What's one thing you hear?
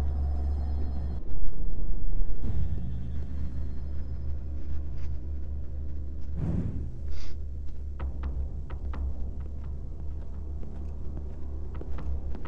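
Soft footsteps tap on a hard floor.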